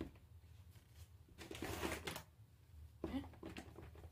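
A gloved hand brushes against the inside of a plastic tub.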